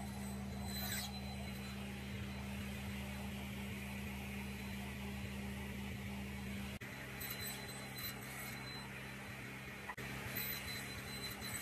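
A table saw motor hums steadily.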